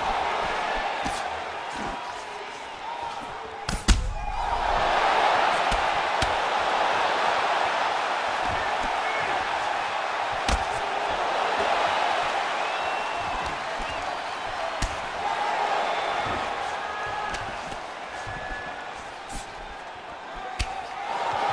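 A crowd roars and cheers steadily in a large arena.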